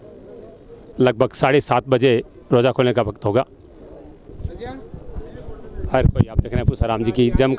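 A man speaks loudly and close by.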